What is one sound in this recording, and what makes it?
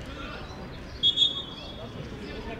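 A referee blows a short whistle.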